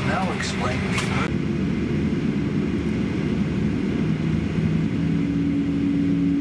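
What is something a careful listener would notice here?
A jet engine roars steadily as an airliner taxis nearby.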